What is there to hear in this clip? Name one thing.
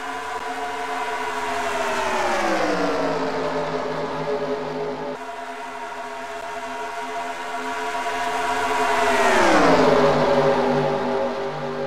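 A racing car engine roars past close by, its pitch dropping as it passes.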